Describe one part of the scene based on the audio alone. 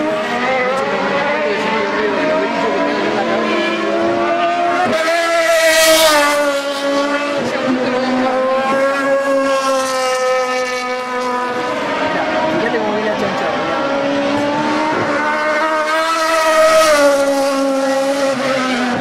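Racing car engines roar loudly, revving up and down as cars speed past.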